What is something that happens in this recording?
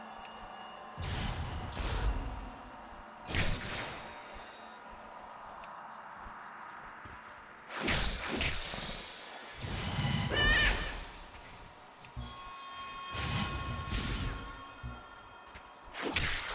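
Magical attack effects whoosh and burst in short blasts.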